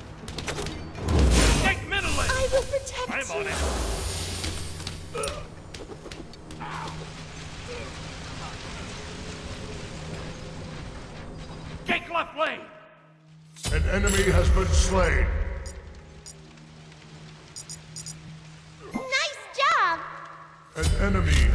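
Magic spell effects whoosh and crackle in bursts.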